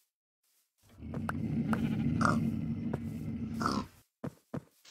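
A pig grunts nearby.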